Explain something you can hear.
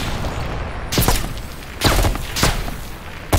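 Rifle shots crack and echo outdoors.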